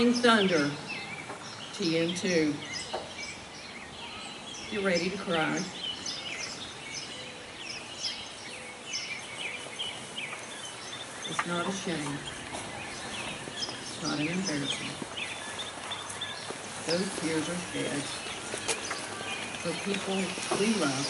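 A man speaks steadily through a loudspeaker outdoors, with pauses between phrases.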